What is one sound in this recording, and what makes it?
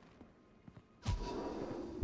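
A door bursts open.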